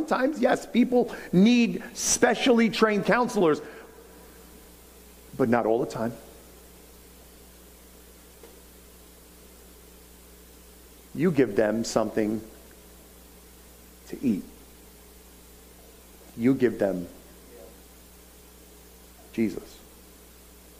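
A middle-aged man speaks with animation through a microphone, with long pauses.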